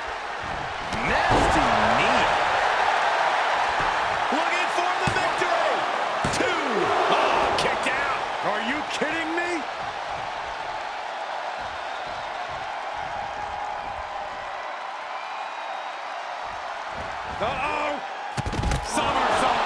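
A body slams hard onto a wrestling mat with a thud.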